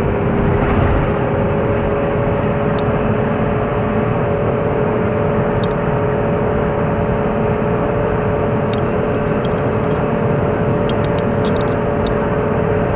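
Tyres roll on the road with a constant rumble.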